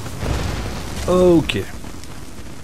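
A creature screeches as it is struck.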